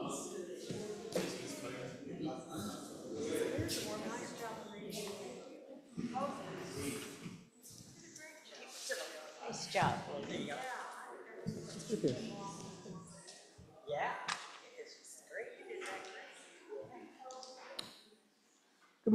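A congregation of men and women chatter and greet one another in an echoing hall.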